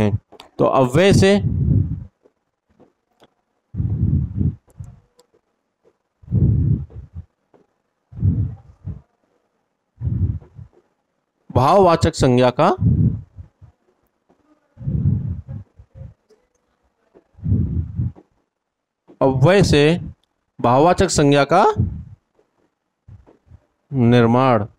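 A man speaks calmly and clearly in short bursts, close to a microphone.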